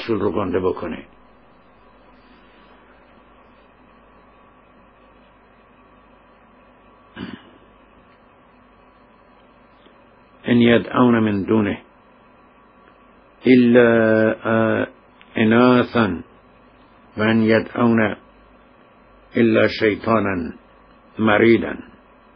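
A middle-aged man speaks slowly in short bursts with long pauses, close by.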